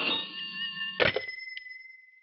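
A telephone receiver is lifted with a click.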